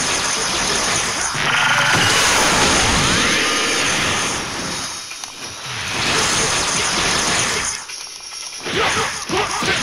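Energy blasts whoosh and explode in a video game fight.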